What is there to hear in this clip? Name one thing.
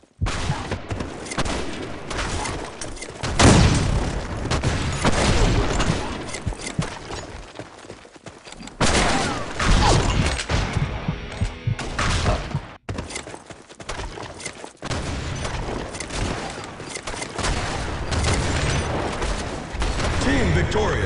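A sniper rifle fires with a loud, sharp crack.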